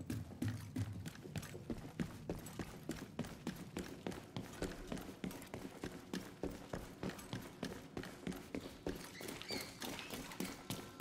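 Footsteps thud steadily on a hard floor, walking at a brisk pace.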